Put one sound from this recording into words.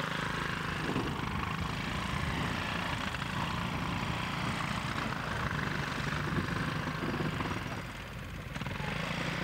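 A small engine drones steadily as a vehicle drives downhill.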